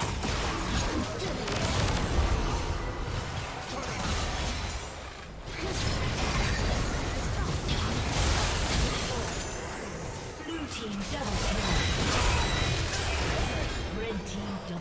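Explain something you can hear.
Magic spells blast and crackle in a busy fight.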